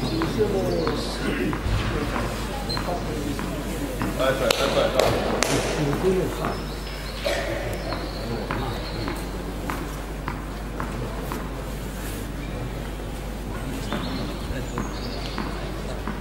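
Tennis balls are struck with rackets, with sharp pops echoing in a large hall.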